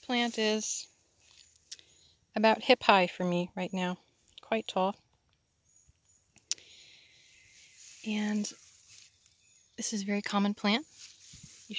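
Leaves rustle softly as a hand touches them.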